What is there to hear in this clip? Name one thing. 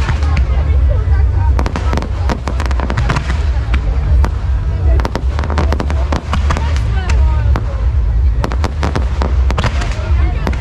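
Fireworks crackle and bang rapidly overhead.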